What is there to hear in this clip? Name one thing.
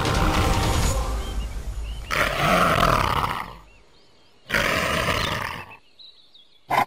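A monkey shrieks in alarm.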